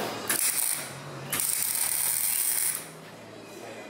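A gas torch hisses loudly in short bursts.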